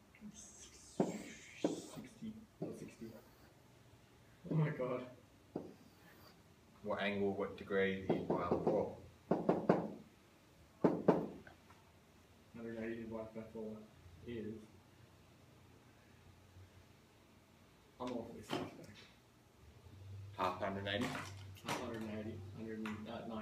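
A young man speaks calmly, close by, explaining in pauses.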